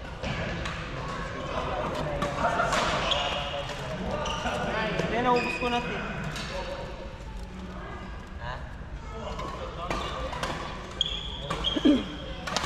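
Several people talk and call out across a large echoing hall.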